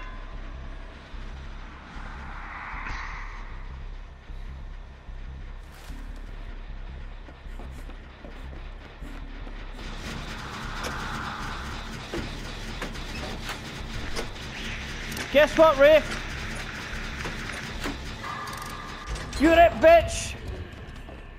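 Footsteps run across wooden floorboards.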